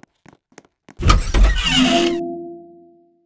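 A door creaks open with a loud burst.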